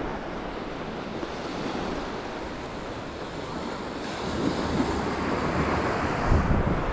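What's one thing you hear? Footsteps squelch on wet sand.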